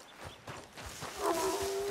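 Leafy branches rustle and brush against a passing body.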